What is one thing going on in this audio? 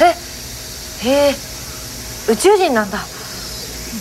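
A young woman speaks with surprise close by.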